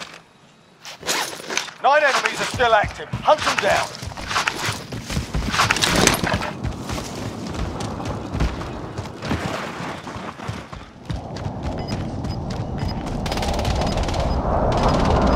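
Footsteps rustle quickly through grass and over rocks.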